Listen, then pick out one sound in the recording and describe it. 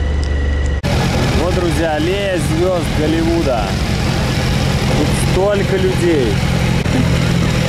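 Men and women talk nearby on a busy street.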